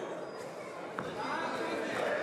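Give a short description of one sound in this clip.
A boxing glove thuds against a body.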